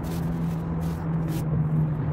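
Hands rub and tap on a plastic seat back.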